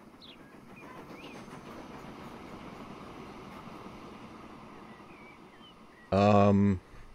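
A steam locomotive chugs past with rumbling wheels on the rails.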